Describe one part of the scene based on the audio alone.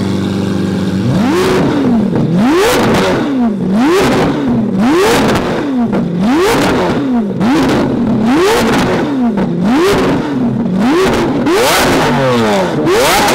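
A sports car engine revs hard over and over, rising and falling in quick bursts.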